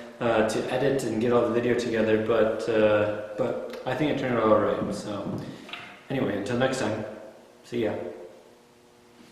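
A young man speaks calmly and clearly into a microphone, close by.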